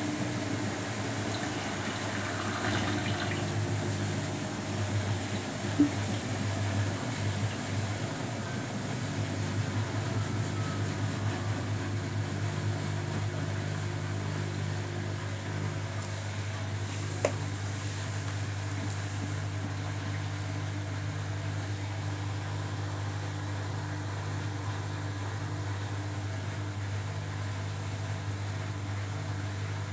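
A front-loading washing machine hums as its drum turns.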